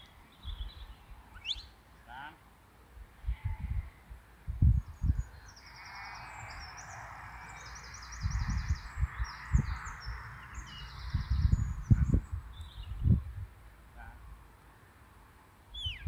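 Wind buffets in low, gusty bursts outdoors.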